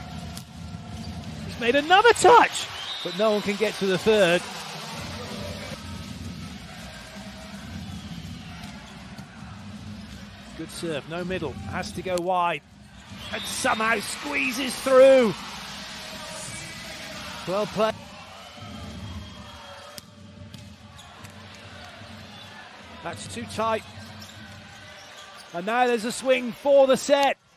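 A volleyball is struck hard with sharp smacks.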